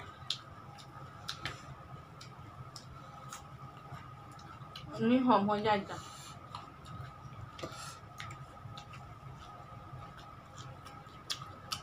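A man and a woman chew and smack their lips close to a microphone.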